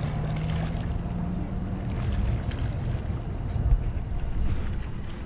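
Water splashes and sloshes as a swimmer strokes through a pool.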